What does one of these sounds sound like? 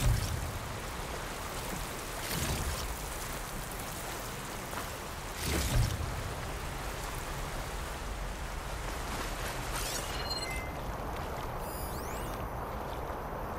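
Footsteps crunch on sand and dirt.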